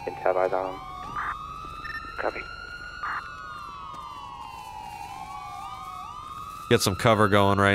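A police siren wails nearby, rising and falling.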